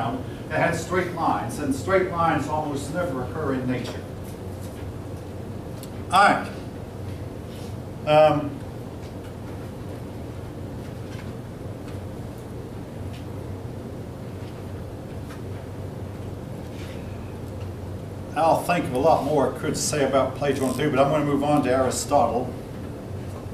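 A middle-aged man speaks calmly to a room.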